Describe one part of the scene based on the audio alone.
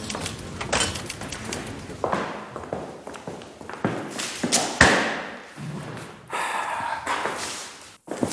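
Footsteps walk across a hard floor indoors.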